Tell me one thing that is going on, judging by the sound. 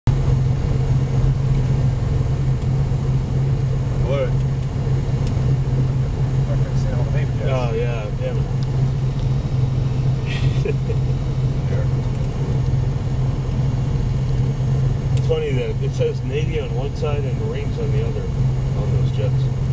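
A small propeller plane's engine drones steadily up close.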